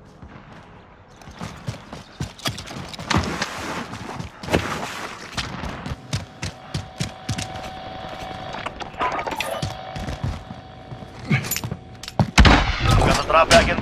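A rifle is handled with metallic clicks in a video game.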